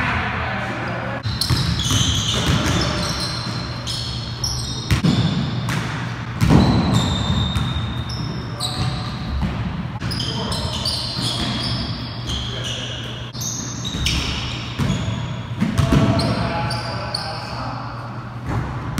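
Sneakers squeak sharply on a wooden gym floor.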